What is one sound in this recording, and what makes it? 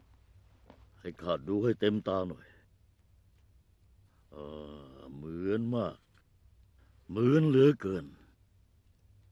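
A man speaks tensely, close by, in short bursts.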